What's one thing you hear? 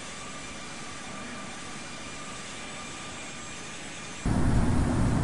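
Jet engines whine steadily at a distance.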